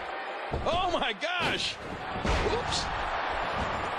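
A wrestler's body slams onto the mat with a heavy thud.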